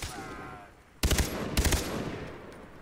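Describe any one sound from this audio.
A rifle fires short bursts.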